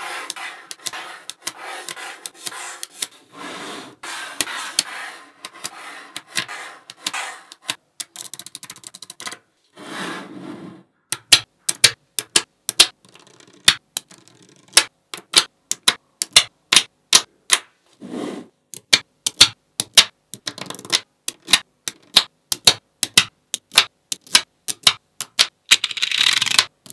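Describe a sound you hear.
Metal balls rattle and slide against each other.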